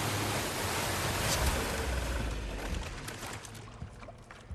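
A boat motor rumbles loudly.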